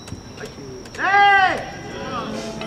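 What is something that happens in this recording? A man shouts a long, loud call.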